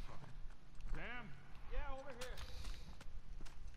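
A man calls out loudly.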